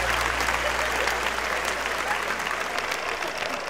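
A crowd of adults chatters and cheers loudly at a lively party.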